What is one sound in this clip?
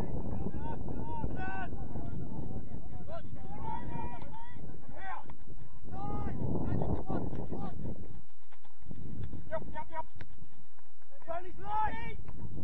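Men shout to each other from across an open field.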